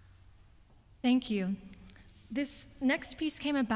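A young woman sings with vibrato in a large echoing hall.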